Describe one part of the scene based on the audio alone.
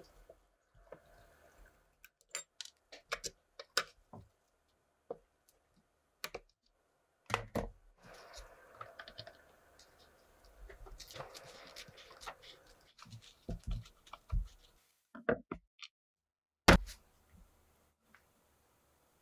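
A screwdriver scrapes and clicks as it turns screws out of a wooden guitar body.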